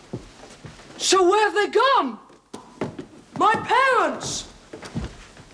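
A boy calls out with alarm.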